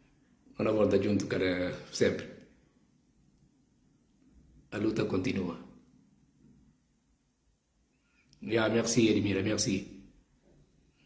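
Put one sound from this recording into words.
A man speaks calmly in short bursts through a microphone on an online call.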